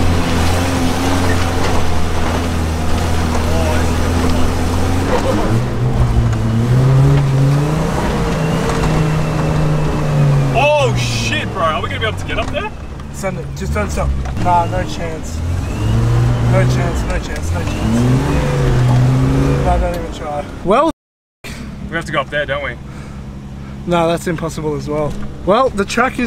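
A car engine hums and revs while driving over rough ground.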